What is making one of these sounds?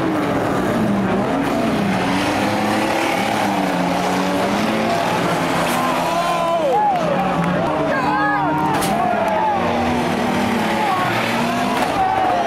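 Several car engines roar and rev loudly, rising and falling.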